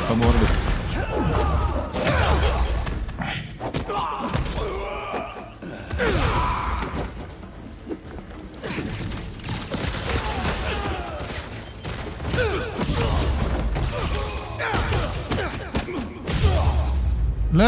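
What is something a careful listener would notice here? Punches and kicks thud in a game fight.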